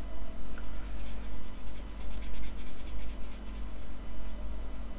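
A brush scrapes softly across paper.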